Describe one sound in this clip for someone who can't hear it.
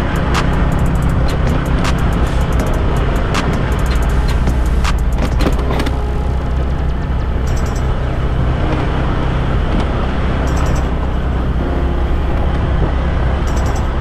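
A motorbike engine drones steadily up close.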